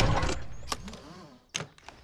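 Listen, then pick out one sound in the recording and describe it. A seat belt buckle clicks shut.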